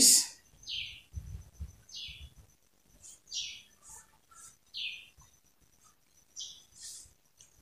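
Hands rustle and swish across cloth.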